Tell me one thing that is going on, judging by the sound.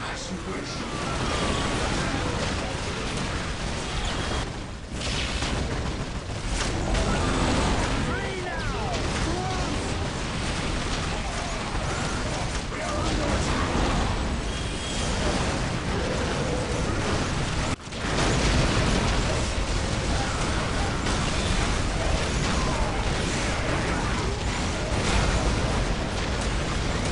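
Gunfire rattles and blasts in a loud battle.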